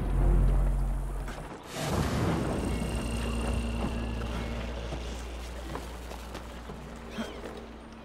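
Footsteps run across a rooftop.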